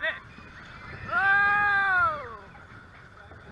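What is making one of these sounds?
Young riders scream loudly as a roller coaster drops.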